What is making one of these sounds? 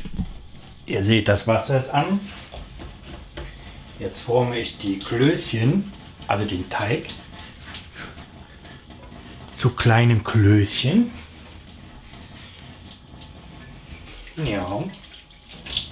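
A middle-aged man talks close by with animation.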